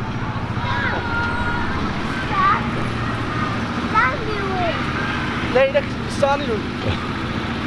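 A young child squeals and calls out excitedly close by.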